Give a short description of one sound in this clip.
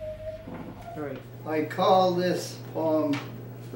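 An elderly man reads aloud calmly, close by.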